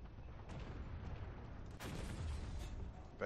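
A heavy machine gun fires a rapid burst.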